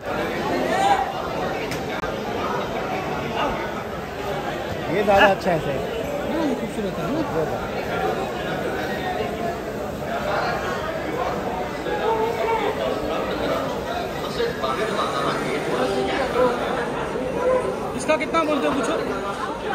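A busy crowd murmurs and chatters all around.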